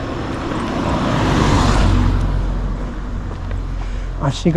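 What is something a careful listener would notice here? A small truck drives past on the road and fades away.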